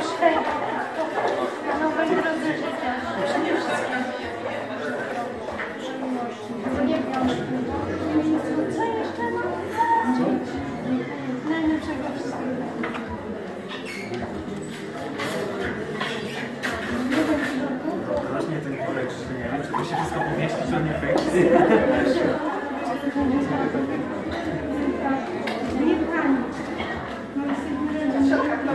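An older woman talks warmly close by.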